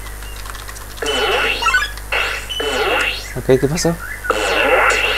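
Electronic game sound effects whoosh and chime.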